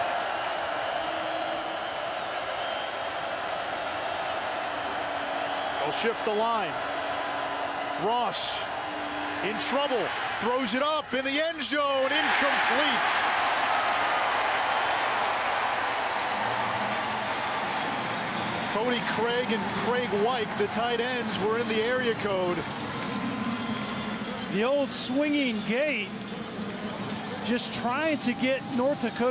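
A large stadium crowd cheers and swells into a loud roar.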